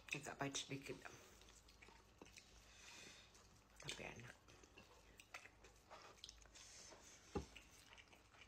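A woman chews and smacks her lips while eating.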